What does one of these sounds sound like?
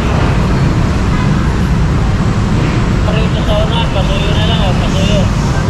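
Street traffic rumbles steadily nearby.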